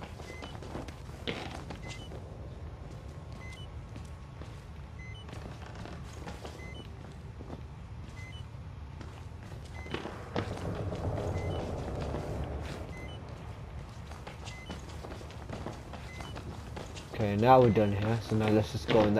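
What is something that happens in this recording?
Slow footsteps tread across a hard floor.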